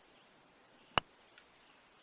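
A putter taps a golf ball with a short click.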